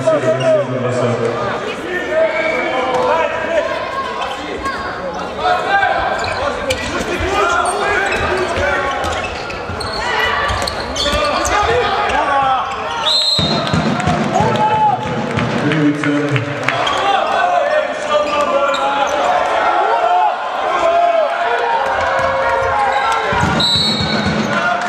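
Players shout and call out across a large echoing hall.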